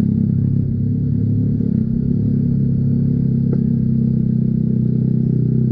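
A motorcycle engine drones steadily close by.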